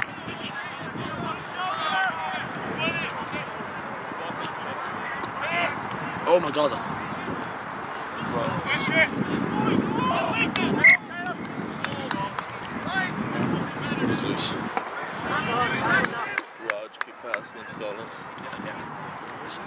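Spectators on the sideline call out and cheer.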